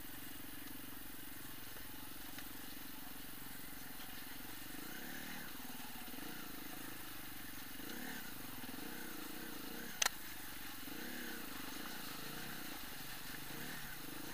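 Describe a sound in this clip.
Tyres splash through mud and puddles.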